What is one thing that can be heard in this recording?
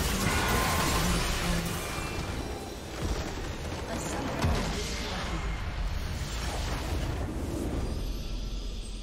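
Spells and explosions crash and boom in a game battle.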